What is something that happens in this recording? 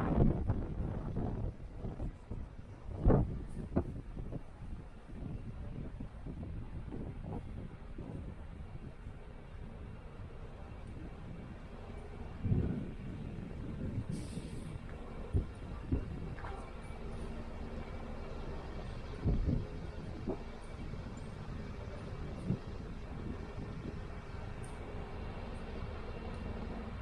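Traffic rumbles steadily along a nearby street outdoors.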